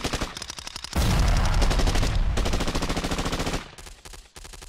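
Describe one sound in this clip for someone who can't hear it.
Gunfire cracks among rocks.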